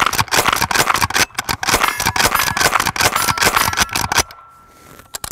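A rifle fires loud shots outdoors.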